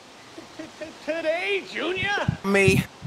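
Two young men laugh close by.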